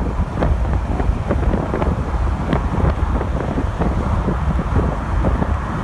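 A car passes close by.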